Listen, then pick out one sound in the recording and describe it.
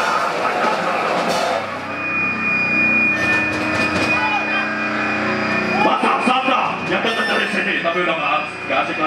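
An electric guitar plays loud, distorted chords.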